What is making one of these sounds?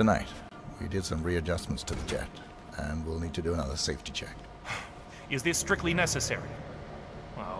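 An older man answers in a calm, refined voice.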